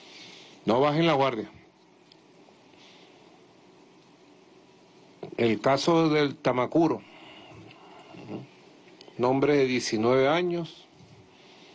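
A middle-aged man speaks calmly into a microphone, in short bursts with pauses.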